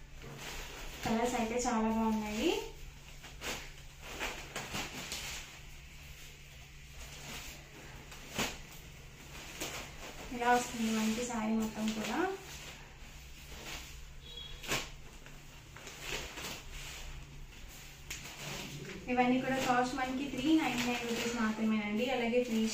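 Cloth rustles and slides as hands lift and lay down fabric pieces.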